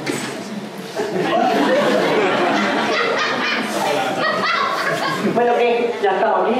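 An audience laughs and claps in a hall.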